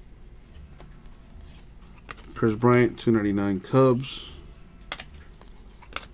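Glossy trading cards slide and flick against each other in hands.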